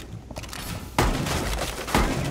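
An explosion booms and debris scatters.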